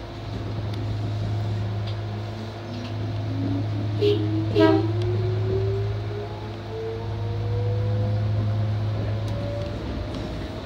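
A train's motor whines, rising in pitch as the train speeds up.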